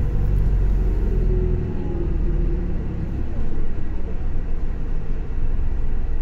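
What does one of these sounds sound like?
A bus engine rumbles low and steady while the bus moves.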